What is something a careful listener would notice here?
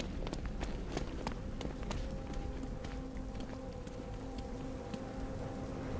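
Footsteps tap quickly on hard wet ground.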